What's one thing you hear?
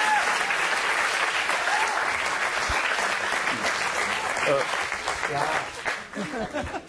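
An audience applauds and cheers loudly in a large hall.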